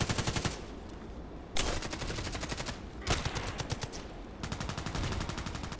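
A rifle fires rapid bursts of automatic shots.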